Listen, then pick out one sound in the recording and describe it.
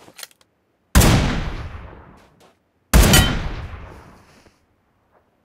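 Gunshots boom loudly and echo away.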